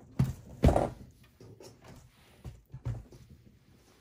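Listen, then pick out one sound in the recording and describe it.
A metal computer case clunks and rattles as hands handle it.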